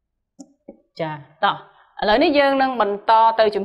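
A young woman speaks clearly and with animation, close to a microphone.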